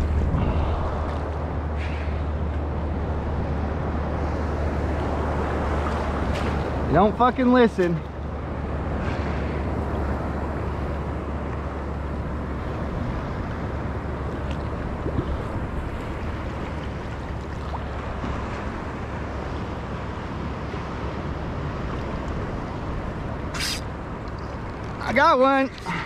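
Wind rumbles across the water.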